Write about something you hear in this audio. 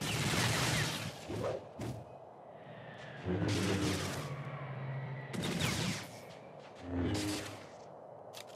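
Lightsabers hum and clash in a video game battle.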